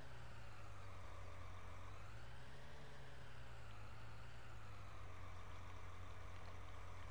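A tractor engine hums steadily at idle.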